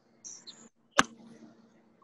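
A golf club strikes a ball.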